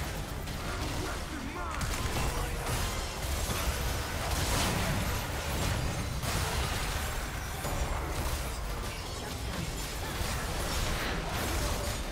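Game spells and hits crackle and boom in quick bursts.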